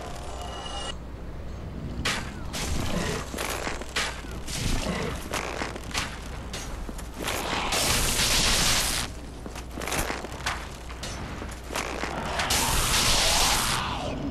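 A winged creature screeches.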